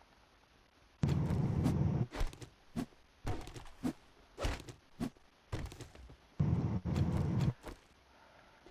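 An axe strikes wood with heavy, hollow thuds.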